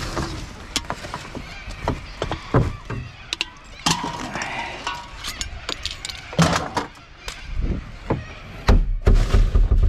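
Gloved hands rummage through rustling plastic and crinkling cans in a bin.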